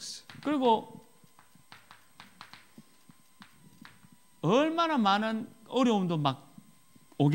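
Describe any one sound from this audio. A man speaks through a microphone in a lively, emphatic voice.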